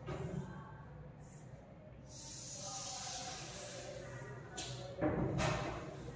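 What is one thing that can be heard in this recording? Chalk scrapes and taps on a chalkboard.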